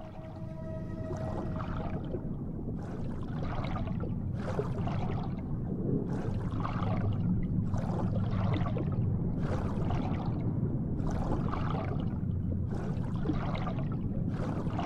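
A swimmer strokes through water underwater in rhythmic strokes.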